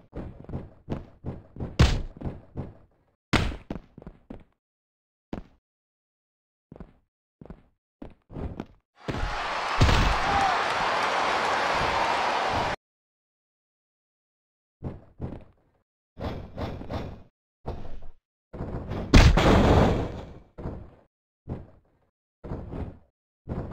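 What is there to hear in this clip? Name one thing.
Heavy thuds of bodies slamming onto a mat.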